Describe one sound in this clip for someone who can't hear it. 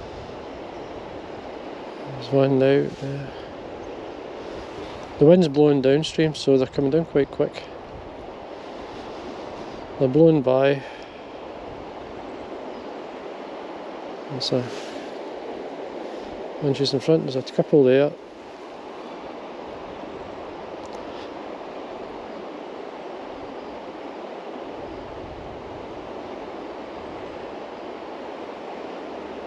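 A river flows and ripples steadily over stones.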